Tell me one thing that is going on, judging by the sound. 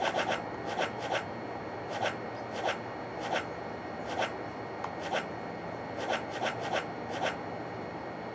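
Short electronic menu clicks tick in quick pairs.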